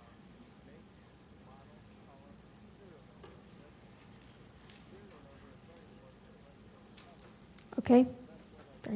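Young women talk quietly in a room, heard faintly from a distance.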